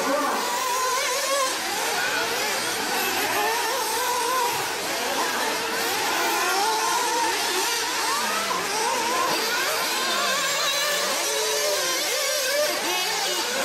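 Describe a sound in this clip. Small electric model cars whine at high speed, their motor pitch rising and falling.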